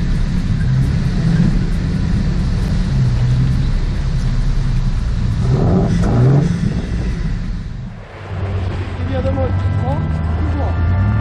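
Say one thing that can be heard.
An off-road vehicle's engine rumbles low and steadily as it drives.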